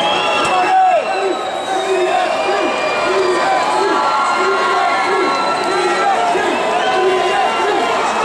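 A large crowd cheers and chants loudly in a big echoing hall.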